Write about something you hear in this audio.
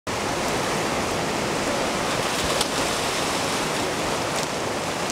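A river rushes loudly over rocks.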